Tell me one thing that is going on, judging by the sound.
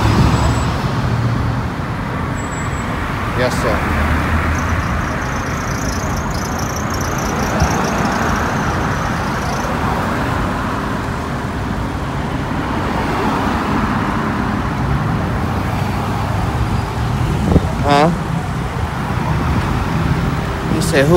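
Traffic rumbles steadily along a nearby road.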